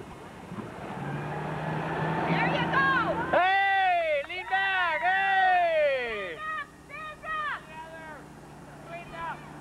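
A motorboat engine drones steadily.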